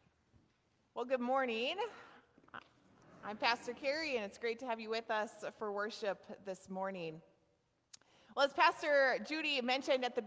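A woman speaks warmly into a microphone.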